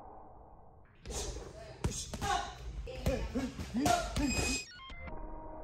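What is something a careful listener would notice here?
A boxer's gloves strike a double-end bag in quick, sharp smacks.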